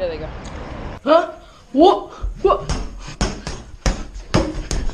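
A punching ball is struck repeatedly with thumps.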